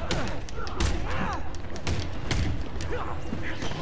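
Punches and kicks land with heavy thuds in a fight.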